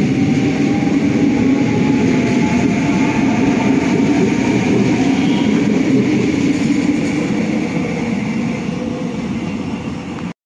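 A passenger train rumbles past close by and fades into the distance.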